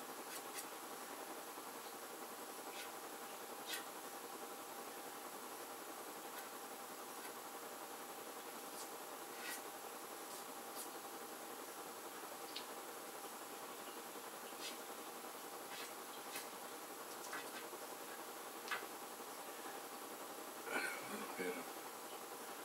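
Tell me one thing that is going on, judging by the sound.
Hands tap and knock lightly against a board.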